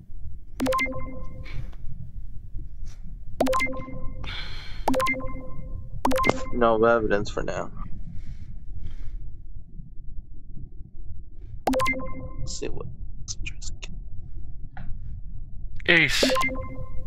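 A short electronic chime rings several times.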